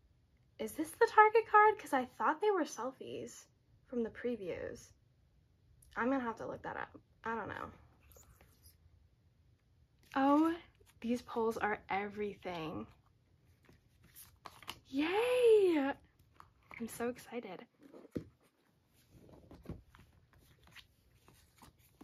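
Glossy cards rustle softly as they are handled.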